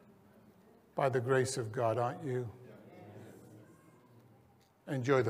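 An elderly man speaks calmly through a microphone.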